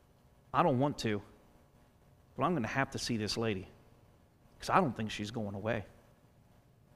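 A man speaks calmly into a microphone in a large room, in short phrases with pauses.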